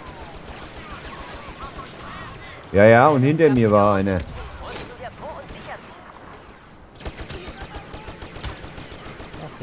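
A blaster rifle fires.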